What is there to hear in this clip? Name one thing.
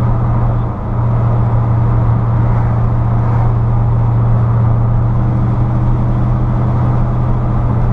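Tyres roar on asphalt.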